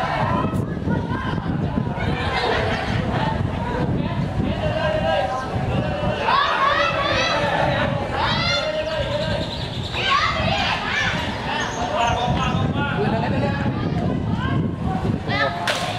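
A crowd of spectators chatters and cheers in the distance.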